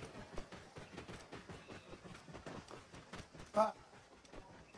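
A camel's hooves thud steadily on dirt.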